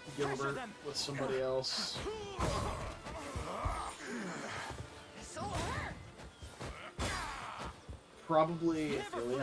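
An older man talks with animation, close to a microphone.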